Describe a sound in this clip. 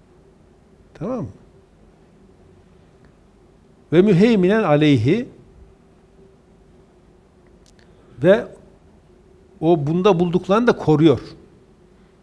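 A middle-aged man speaks through a close microphone, reading out in a chanting, melodic way with pauses.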